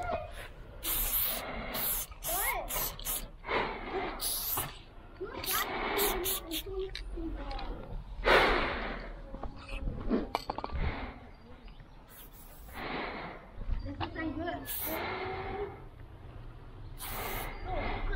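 A spray can hisses in short bursts close by.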